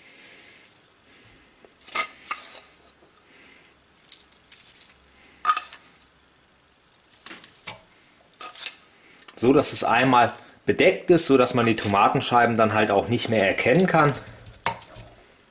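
A spoon scrapes and taps against a pot while scooping soil.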